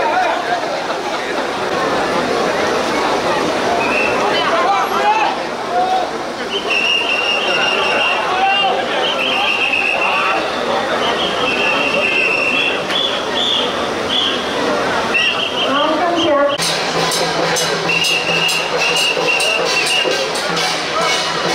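A large crowd chatters and calls out all around outdoors.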